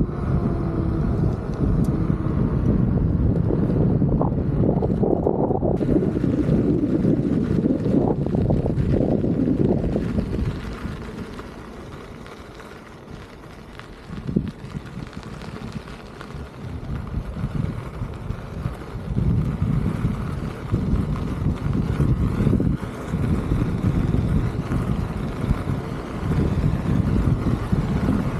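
Wind rushes and buffets against a microphone outdoors.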